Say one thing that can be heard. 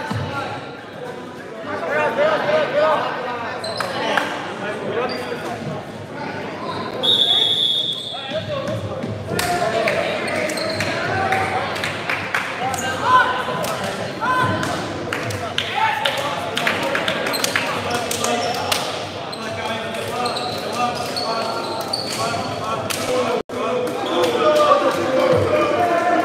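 Sneakers squeak on a wooden court.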